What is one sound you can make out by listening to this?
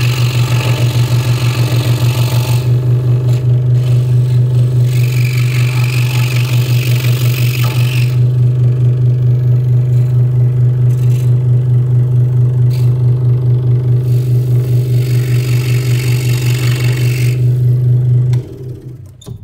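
A scroll saw buzzes steadily as its blade cuts through wood.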